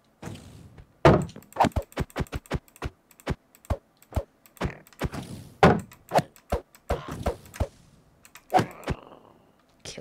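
A sword strikes again and again with quick, sharp hits.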